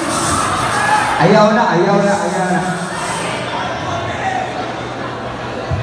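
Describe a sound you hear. A large crowd cheers and screams.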